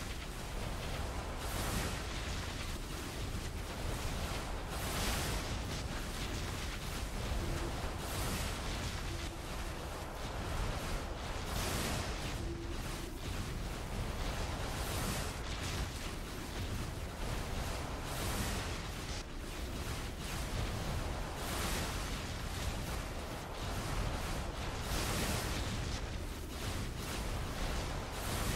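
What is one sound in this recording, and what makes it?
Heavy hits thud and explode again and again.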